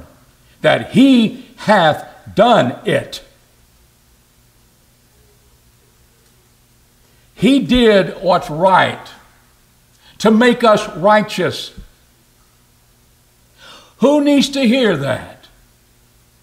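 An older man speaks with animation into a microphone, in bursts with long pauses.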